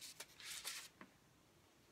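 Paper rustles as it is lifted.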